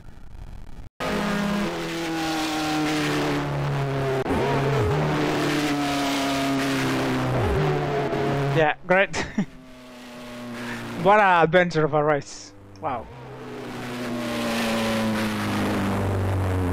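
A racing car engine revs high and steady.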